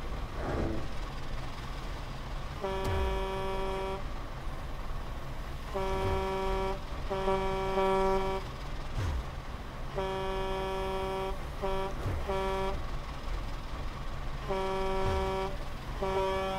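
Vehicle engines idle with a low rumble.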